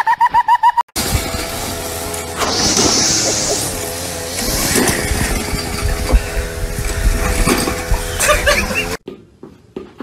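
A lawn mower engine roars steadily.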